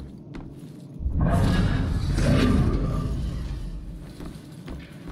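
A ghostly rushing whoosh swells loudly and slowly fades.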